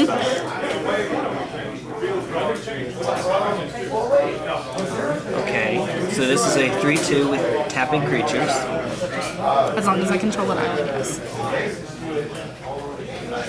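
Playing cards slide and tap on a soft mat.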